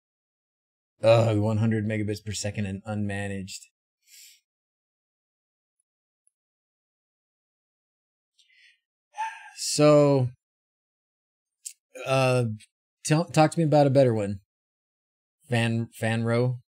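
A middle-aged man talks casually into a close microphone, in bursts with pauses.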